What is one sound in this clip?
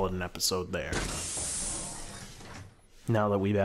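Sliding metal doors hiss open.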